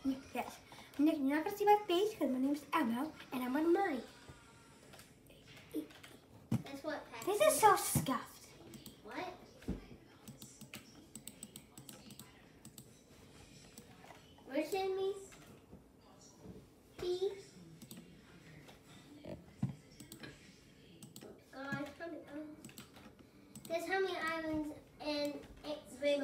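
A young child talks close by, with pauses.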